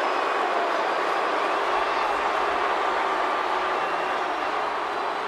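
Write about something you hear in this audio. A large crowd cheers loudly in an arena.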